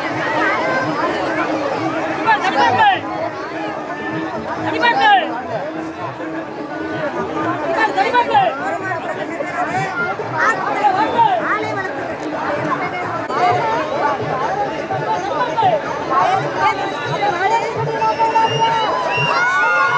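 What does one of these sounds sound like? A large outdoor crowd of men shouts and cheers excitedly.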